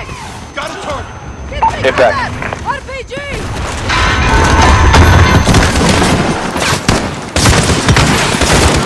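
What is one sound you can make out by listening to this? Gunfire and explosions boom and crackle.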